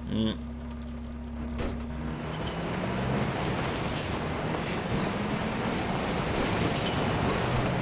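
A car engine rumbles while driving over a rough track.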